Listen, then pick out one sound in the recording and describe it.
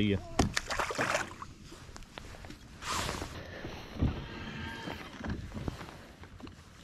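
Wind gusts across open water.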